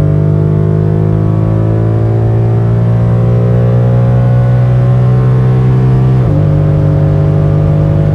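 A car engine roars loudly, its pitch rising slowly as the car speeds up.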